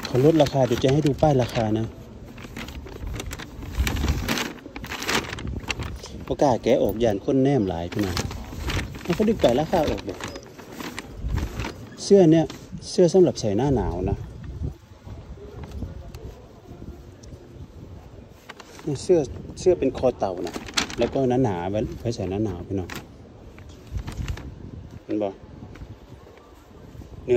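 A paper bag crinkles and rustles up close.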